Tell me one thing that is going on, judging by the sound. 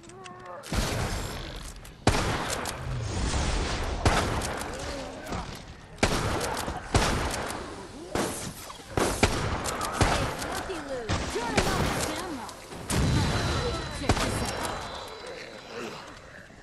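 Guns fire in loud, sharp bursts.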